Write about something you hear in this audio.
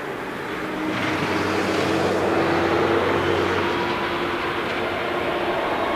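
A jet airliner's engines roar loudly as it speeds along the runway.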